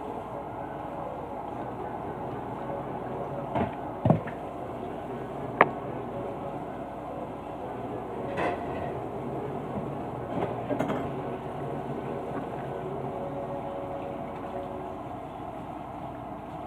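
Running water splashes steadily.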